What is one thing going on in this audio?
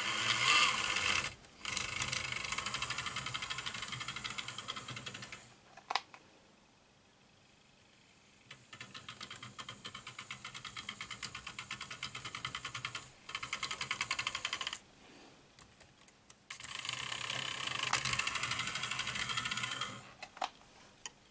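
A small electric motor whines with a buzz.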